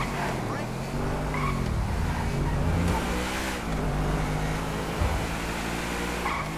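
A sports car engine revs and roars as the car speeds along.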